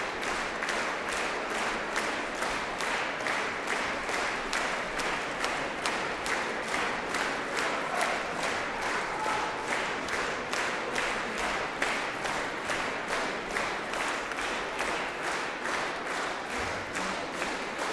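An audience applauds in rhythmic unison in a large echoing hall.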